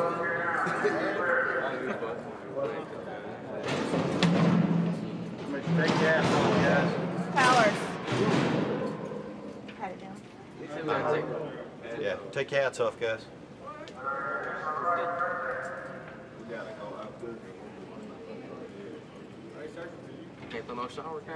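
Young men talk and shout nearby in an echoing hall.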